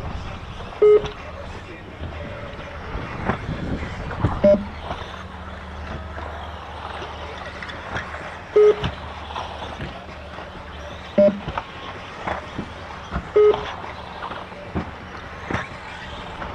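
Tyres of a small car bump and clatter over the track.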